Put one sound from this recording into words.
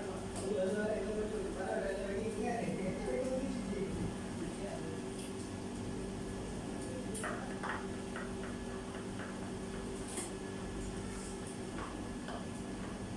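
A knife taps on a cutting board as food is chopped.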